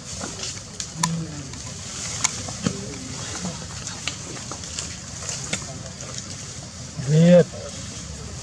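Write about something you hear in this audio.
A monkey squeals briefly nearby.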